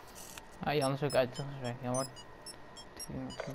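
An electronic device beeps quickly.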